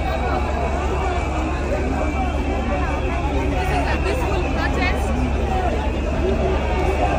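A crowd of people talk and shout in a noisy babble outdoors.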